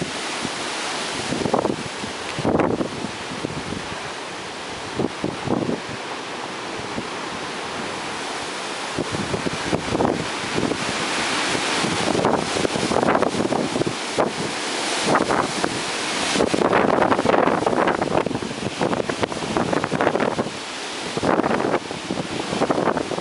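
Strong wind roars in gusts outdoors.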